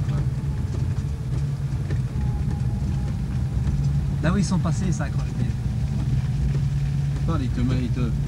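Tyres roll over a rough dirt road.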